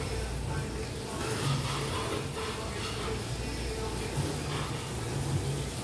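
A man loudly slurps noodles up close.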